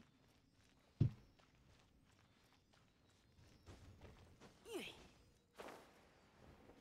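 Magic blasts burst with sharp impacts.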